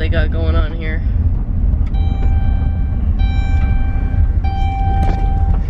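A car engine rumbles low and steady from inside the car.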